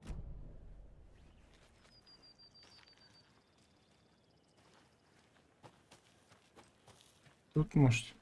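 Footsteps rustle through grass outdoors.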